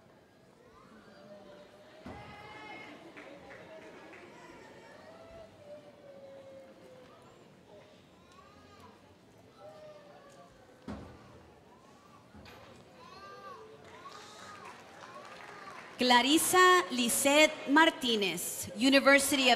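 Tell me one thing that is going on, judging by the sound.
A woman reads out names through a microphone and loudspeakers in a large echoing hall.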